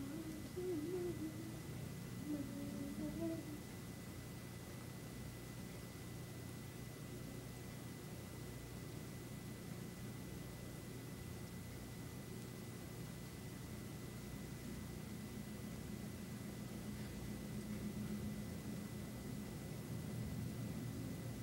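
A small parrot pecks and crunches seeds close by.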